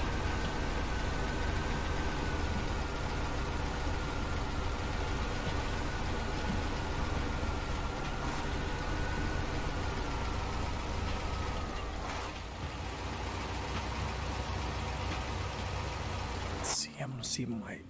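A heavy truck engine rumbles steadily as it crawls along.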